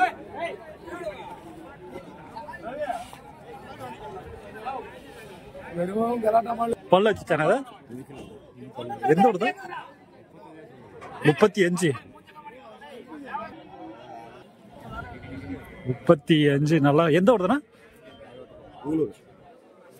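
A crowd of men chatters in the background outdoors.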